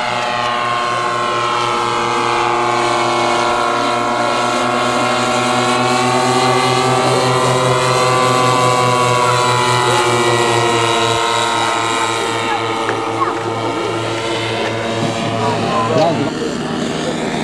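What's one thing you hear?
A propeller plane's engine drones steadily overhead.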